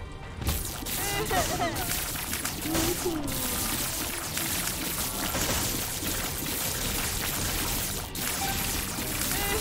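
Cartoonish shots fire and splatter in quick succession.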